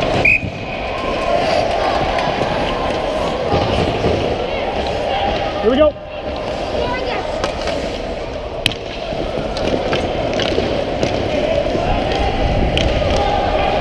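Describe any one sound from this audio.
Hockey sticks clack against the ice and puck.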